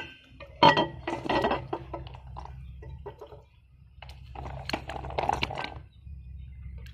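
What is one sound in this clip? A metal spoon clinks and scrapes against a ceramic jar.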